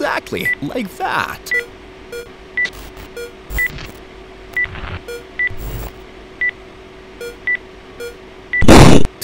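A countdown timer beeps steadily.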